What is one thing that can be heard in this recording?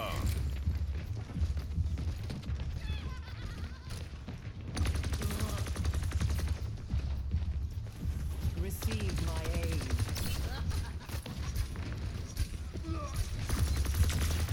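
Gunfire rings out in rapid bursts.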